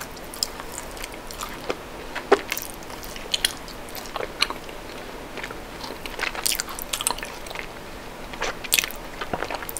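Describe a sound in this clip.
A woman bites and chews chocolate close to a microphone, with crisp snaps and wet mouth sounds.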